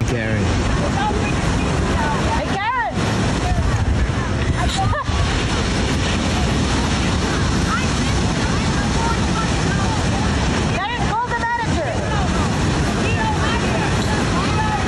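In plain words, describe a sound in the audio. Waves crash and wash onto a beach, outdoors.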